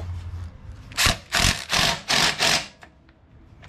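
An impact driver whirs in short loud bursts.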